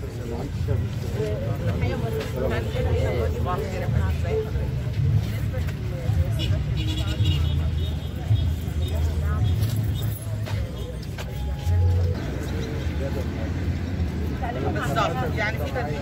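A crowd of men and women talk over one another close by.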